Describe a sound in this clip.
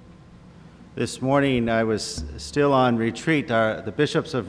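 A middle-aged man speaks calmly into a microphone in a large echoing church.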